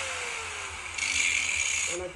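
An angle grinder grinds against metal with a loud harsh hiss.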